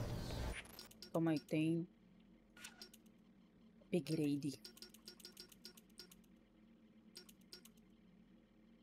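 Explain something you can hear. Short electronic menu beeps and clicks sound.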